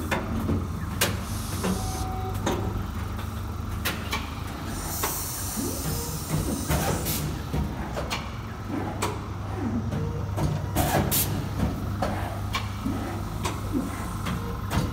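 A machine clicks and clatters in quick, uneven knocks.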